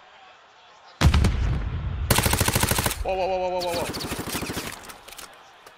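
A rifle fires rapid bursts of shots up close.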